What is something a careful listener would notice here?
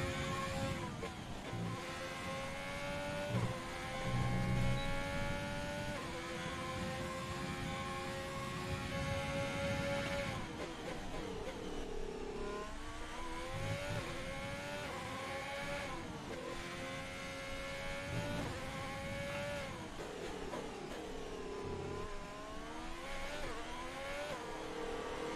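A racing car engine screams at high revs, rising in pitch and dropping sharply with each gear change and braking.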